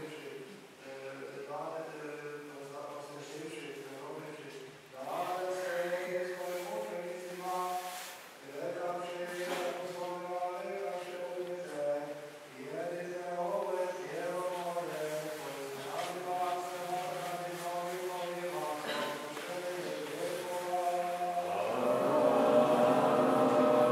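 A man chants slowly in a steady, sung voice.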